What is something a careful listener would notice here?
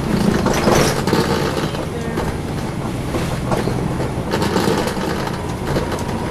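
Rattles and creaks sound inside a moving bus.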